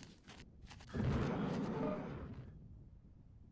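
A jetpack thruster roars briefly.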